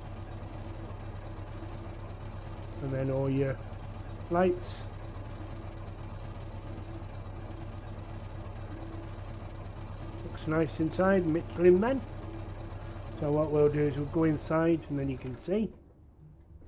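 A truck engine idles with a low steady rumble.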